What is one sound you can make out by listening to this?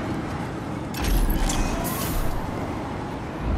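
A metal chest clanks and creaks open.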